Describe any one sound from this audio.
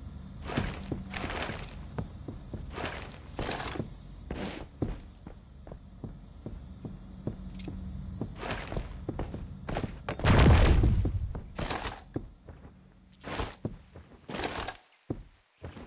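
Footsteps tread quickly across a hard floor.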